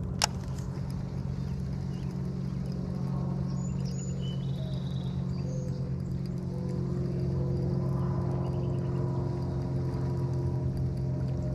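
A fishing reel whirs steadily as its line is wound in.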